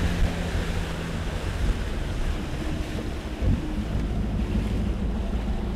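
Water splashes and washes against a boat hull.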